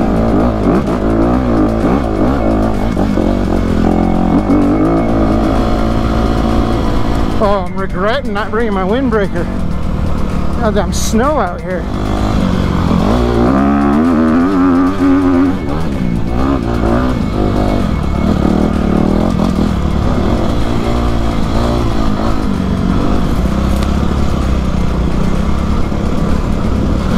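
A dirt bike engine roars close by, revving up and down.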